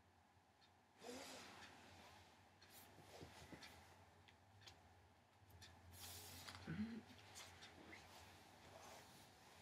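An elderly woman speaks softly and calmly close by.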